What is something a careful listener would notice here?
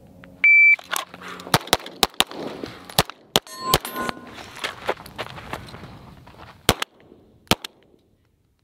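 A handgun fires a rapid series of loud shots outdoors.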